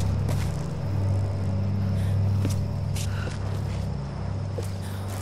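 Leaves and branches rustle in undergrowth.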